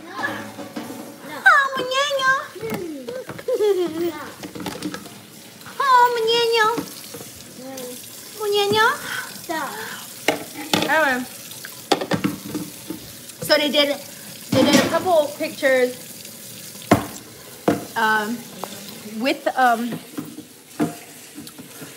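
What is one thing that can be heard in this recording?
A woman talks animatedly and close up, with expressive rises in pitch.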